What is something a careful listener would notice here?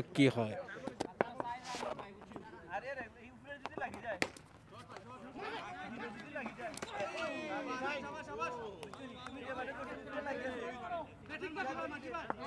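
A crowd of young men and women chatter and call out outdoors.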